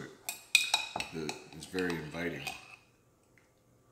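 A spoon clinks against a glass jar.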